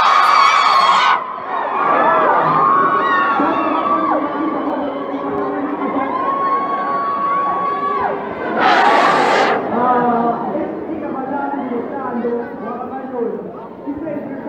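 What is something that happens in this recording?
A young man sings through a microphone and loudspeakers in a large echoing hall.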